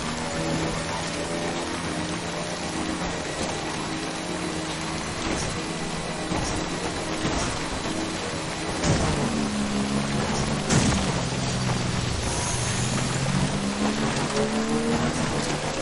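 Tyres crunch over loose rocks.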